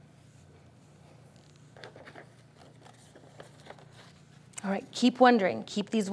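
Paper pages rustle.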